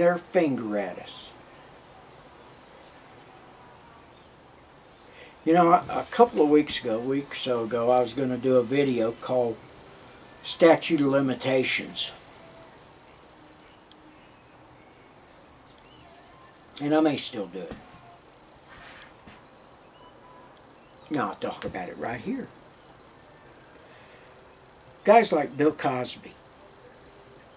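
An elderly man speaks close to a microphone in short, emphatic bursts with pauses between them.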